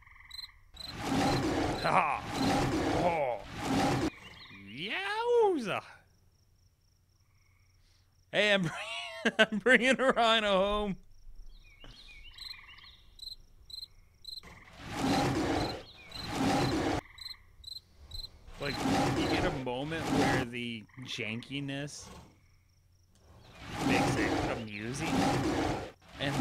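A big cat snarls and growls in a fight.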